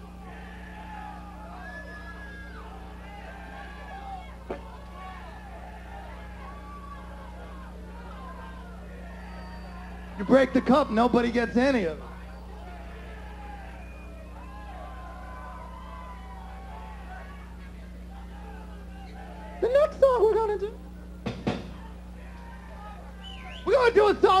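A crowd cheers and shouts in a large room.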